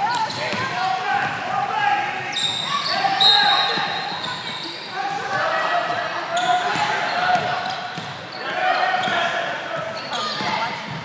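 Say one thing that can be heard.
Spectators shout and cheer in a large echoing gym.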